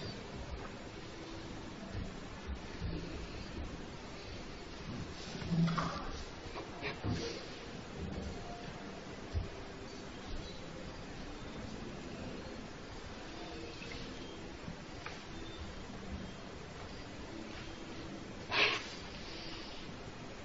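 Brushes and pencils scratch softly on paper.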